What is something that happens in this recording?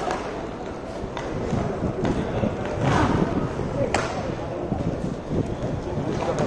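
Skate wheels roll and rumble across a hard rink floor.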